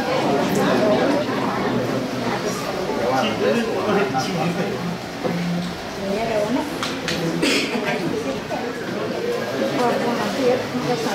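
Several women and men talk over one another nearby.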